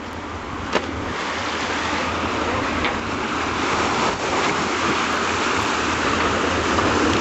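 Air and water burst out in a spray as a sinking boat goes under.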